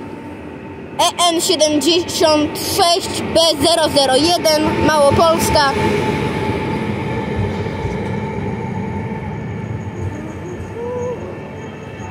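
A train rolls into the station with a low rumble and slows down.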